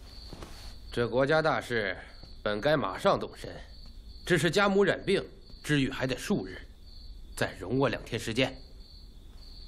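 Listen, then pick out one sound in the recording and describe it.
A man speaks calmly and firmly up close.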